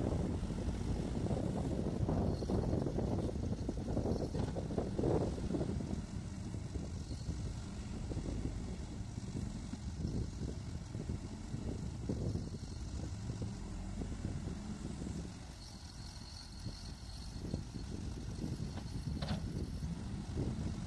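A backhoe loader's bucket scrapes and clanks against the ground.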